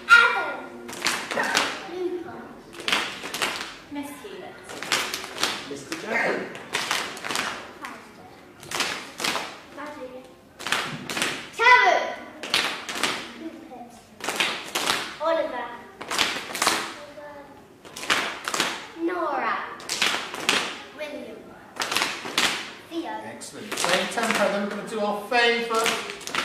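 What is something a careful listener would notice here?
Young children sing and chant together.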